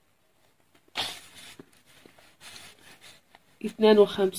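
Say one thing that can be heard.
A sheet of paper rustles as it is laid down.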